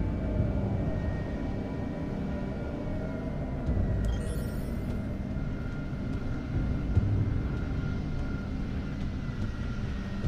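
A hovering aircraft's engine hums and rumbles steadily.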